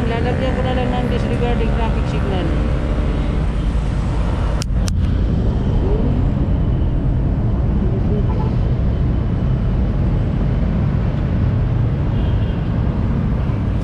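Heavy traffic rumbles steadily on a busy street outdoors.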